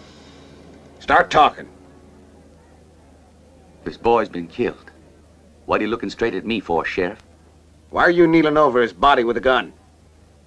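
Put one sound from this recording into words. An older man speaks slowly and sternly, close by.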